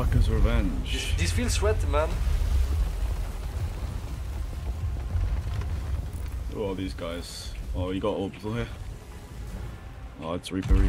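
Waves wash and roll on a stormy sea.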